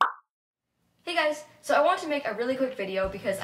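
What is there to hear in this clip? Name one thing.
A young woman speaks close to the microphone with animation.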